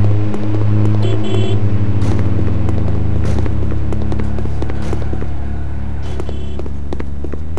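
Phone keypad buttons beep as a number is dialed.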